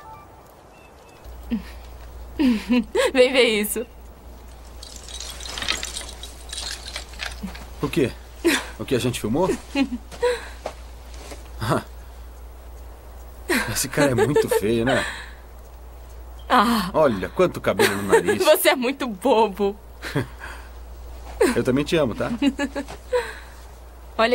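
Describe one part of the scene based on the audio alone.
A young woman talks cheerfully.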